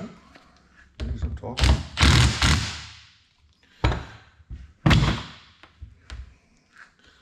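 Plastic parts clatter and knock on a workbench.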